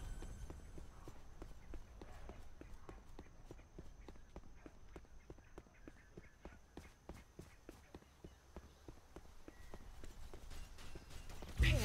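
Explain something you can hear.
Footsteps patter steadily on the ground.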